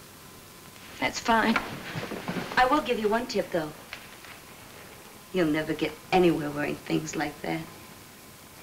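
A young woman speaks in a tense, urgent voice nearby.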